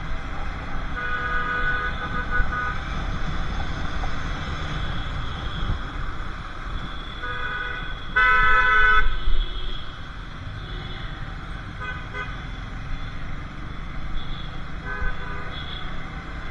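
Horns honk in short bursts.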